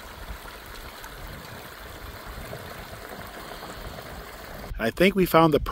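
A shallow stream trickles and burbles over stones.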